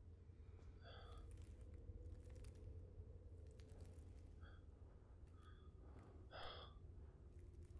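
A hand brushes softly over a rough wall.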